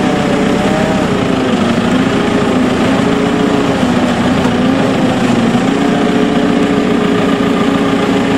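A tractor engine drones steadily close by.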